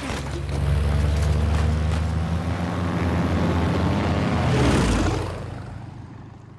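A propeller plane's engines roar loudly over the sea.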